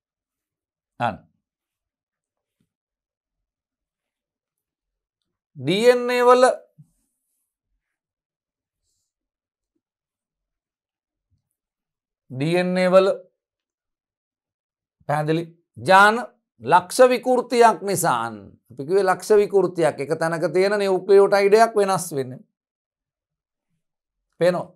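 A man lectures calmly into a close microphone, pausing often.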